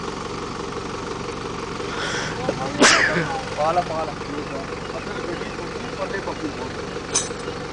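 A vehicle engine idles steadily nearby.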